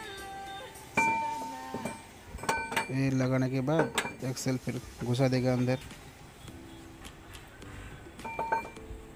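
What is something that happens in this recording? Metal gears clink and knock as they are handled.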